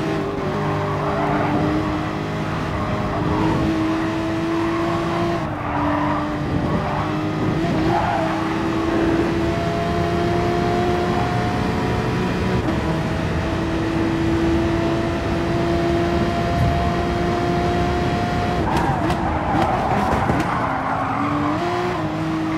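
Tyres screech through the corners.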